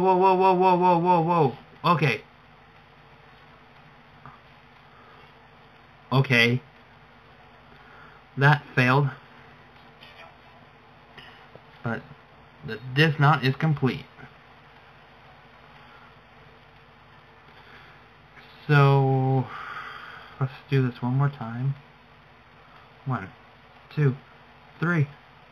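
A young man speaks with animation into a nearby microphone, in short bursts.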